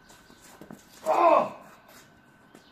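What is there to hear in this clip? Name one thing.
A man lets out a loud, short grunt as he throws.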